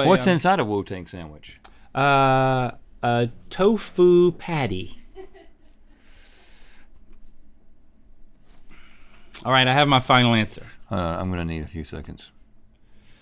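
A second man answers, laughing and talking close to a microphone.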